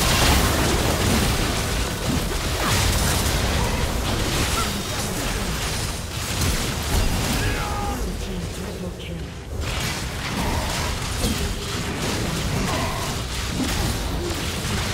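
Magic blasts, hits and clashes from a frantic video game battle crackle and boom almost without pause.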